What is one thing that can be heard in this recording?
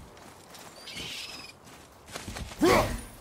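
A bird flaps its wings and cries out.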